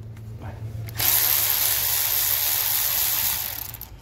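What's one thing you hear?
A cordless ratchet whirs steadily.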